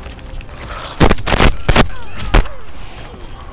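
Heavy punches and kicks thud and crack in quick bursts.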